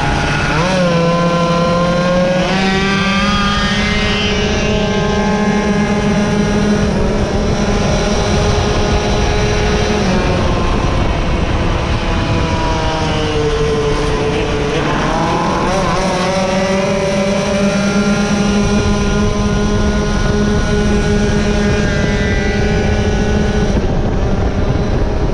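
Wind buffets loudly as the motorcycle speeds along.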